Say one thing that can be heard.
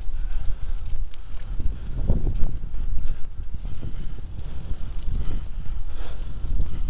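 Bicycle tyres roll and rattle over a rough path.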